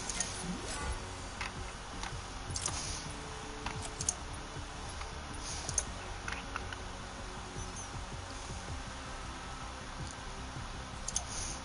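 Soft game menu clicks tick now and then.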